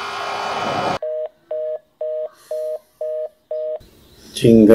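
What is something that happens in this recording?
A phone ringtone beeps in short repeated pulses over a phone line.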